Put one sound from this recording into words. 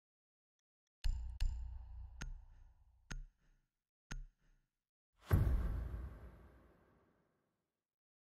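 A video game's countdown sounds deep booming ticks, ending in a heavy boom.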